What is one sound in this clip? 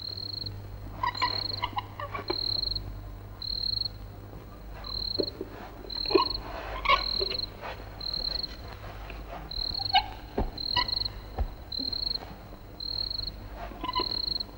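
A blanket rustles as a child pulls it about.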